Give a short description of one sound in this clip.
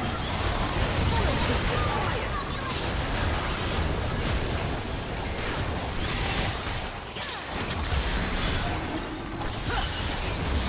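Magic spells whoosh and crackle in quick bursts during a fight.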